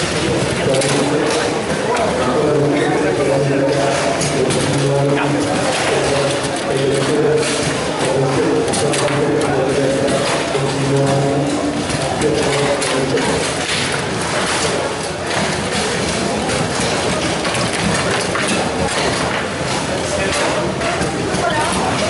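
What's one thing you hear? Plastic figures clack against a ball on a table football game.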